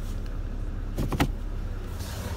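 A gear lever clicks into place.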